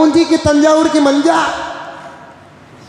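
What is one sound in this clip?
An elderly man chants in a long, held tone through a microphone, and the sound fades out in an echo.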